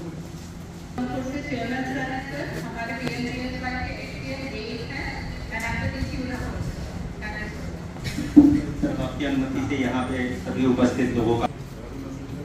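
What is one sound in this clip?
A woman speaks calmly over a loudspeaker in an online call.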